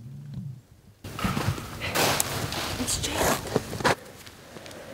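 A young woman speaks nearby with frustration.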